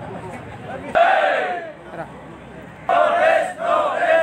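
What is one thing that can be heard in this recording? A crowd of men and women shouts slogans in unison.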